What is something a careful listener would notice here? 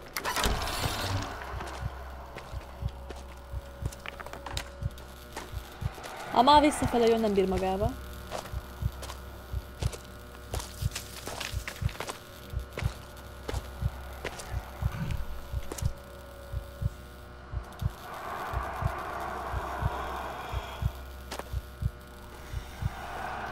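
Footsteps crunch steadily through dry grass and dirt.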